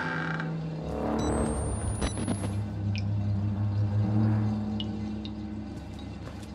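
A heavy door scrapes and creaks as it is pushed open.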